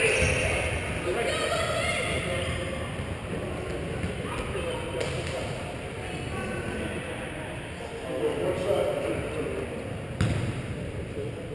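Young men call out in an echoing gymnasium.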